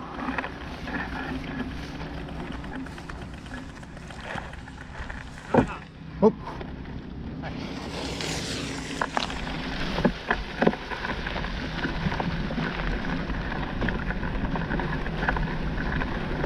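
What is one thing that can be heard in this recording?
Wheels rattle and crunch over a rough dirt track.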